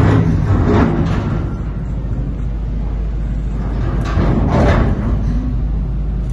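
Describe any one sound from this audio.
Rock and earth crash down as a digger bucket dumps them.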